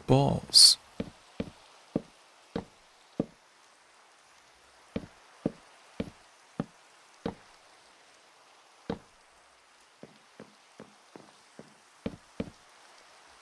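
Wooden chests are placed one after another with short knocks.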